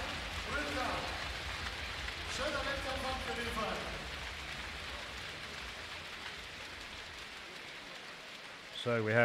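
A large indoor crowd murmurs and cheers in an echoing hall.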